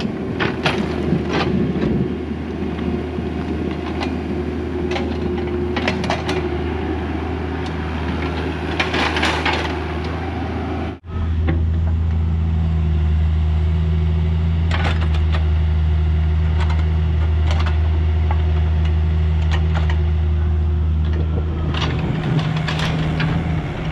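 Dirt and rocks scrape and clunk in an excavator bucket.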